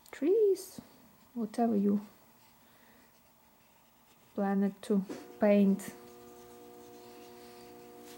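A brush dabs and scrapes softly on paper.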